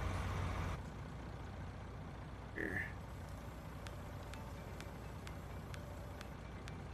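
A tractor engine idles with a low, steady hum.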